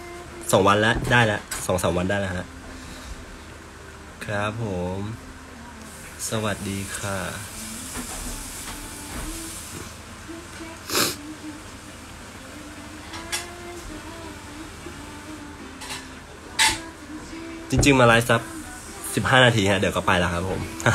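A young man speaks casually and close to the microphone, in short bursts with pauses.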